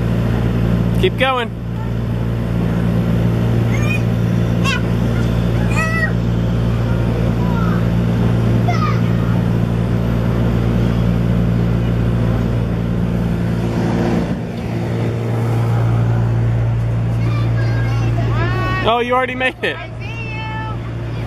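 A young girl squeals and babbles nearby.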